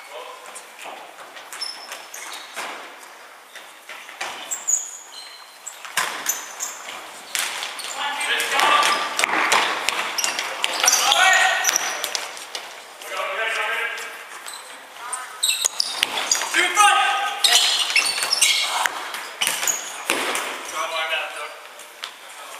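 Trainers squeak sharply on a wooden floor in an echoing hall.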